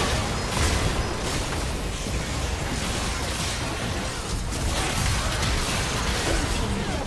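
Game spell blasts and hits crash rapidly in a busy fight.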